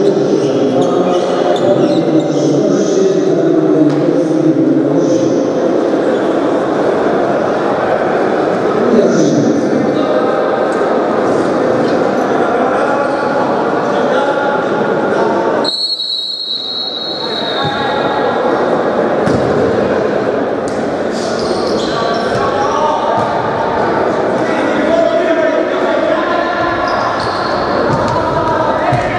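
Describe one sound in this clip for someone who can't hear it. Men's voices chatter and call out, echoing in a large hall.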